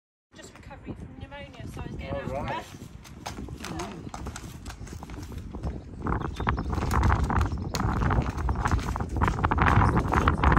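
Horse hooves thud and clatter on a wooden trailer ramp.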